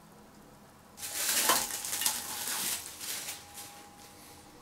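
A glass jar knocks down onto a wooden table.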